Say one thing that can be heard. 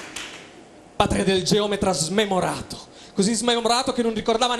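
A man speaks loudly and with animation through a microphone on a stage.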